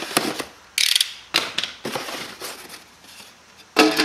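A foam lid squeaks as it is pulled off a box.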